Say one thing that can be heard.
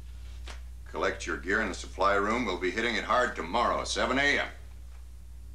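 A second man answers in a calm voice.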